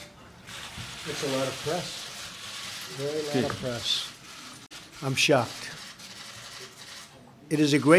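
A man speaks steadily through a microphone.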